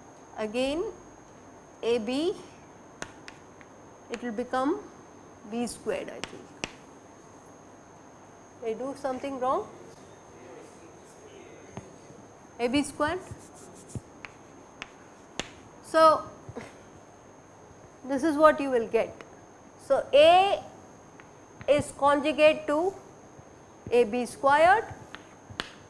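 A woman speaks calmly and clearly into a close microphone, in short phrases with pauses.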